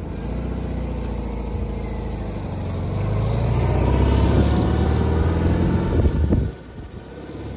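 An old car engine idles with a low, steady rumble.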